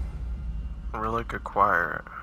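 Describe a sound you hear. A deep-voiced man speaks gruffly nearby.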